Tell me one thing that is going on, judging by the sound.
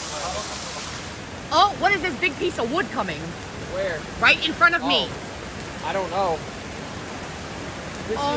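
Floodwater rushes down a street.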